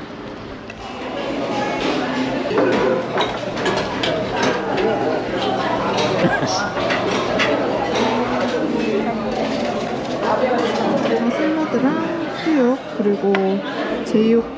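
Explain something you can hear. A crowd of people murmurs in an echoing room.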